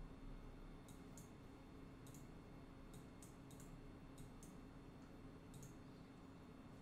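Keyboard keys click in short bursts.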